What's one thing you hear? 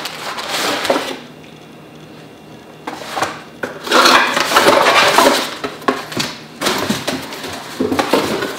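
Cardboard rustles and scrapes as a box is handled.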